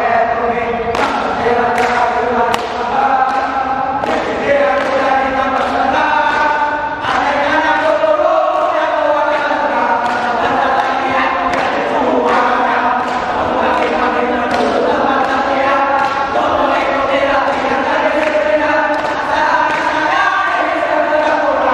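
Boots stomp on a hard floor in time.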